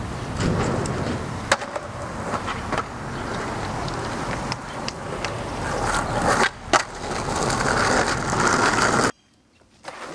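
Skateboard wheels roll on pavement.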